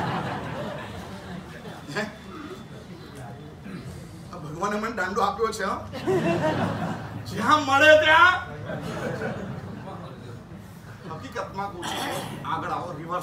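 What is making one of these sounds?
An elderly man speaks calmly, heard through a microphone in a large hall.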